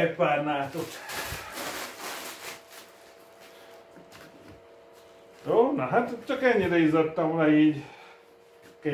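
Fabric rustles as a man shakes out a cloth.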